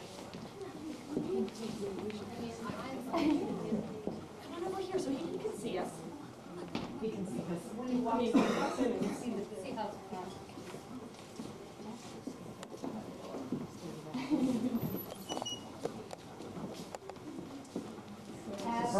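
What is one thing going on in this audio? A crowd of adults chatters in a large echoing hall.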